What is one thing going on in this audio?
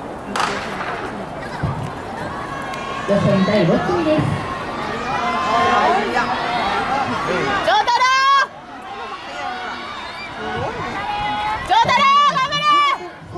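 A crowd of spectators cheers and shouts nearby, outdoors.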